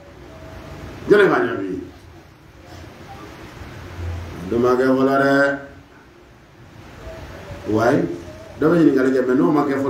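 A man speaks into a microphone in bursts, with long pauses between phrases.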